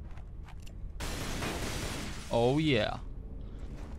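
Glass shatters and tinkles.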